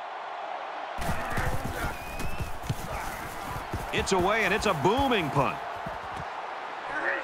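A stadium crowd roars.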